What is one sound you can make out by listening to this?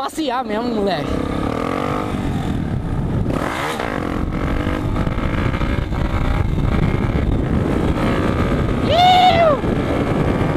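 A single-cylinder four-stroke trail motorcycle rides along a dirt track at a steady pace.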